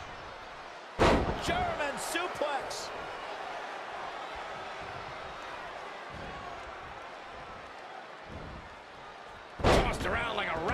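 A heavy body slams onto a wrestling ring mat with a loud thud.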